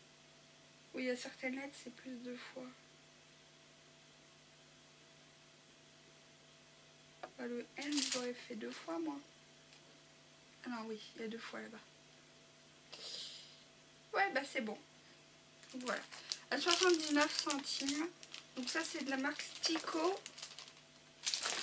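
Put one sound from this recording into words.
A woman talks calmly and close by, in short bursts with pauses.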